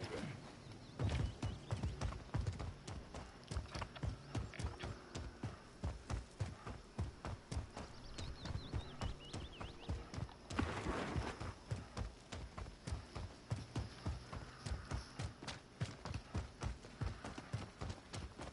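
Footsteps thud rapidly on the ground.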